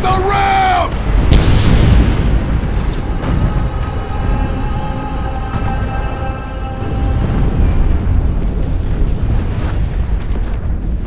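Water rushes and churns underwater.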